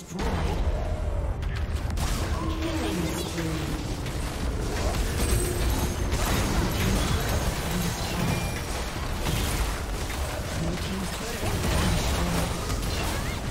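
Magic blasts and weapon hits crackle and thump in a busy fight.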